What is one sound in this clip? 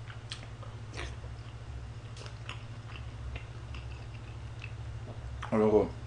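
A young man eats noisily, chewing and slurping.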